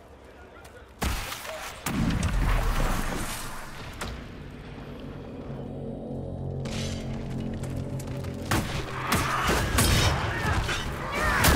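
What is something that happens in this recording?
A magical rift roars with a deep, swelling rumble.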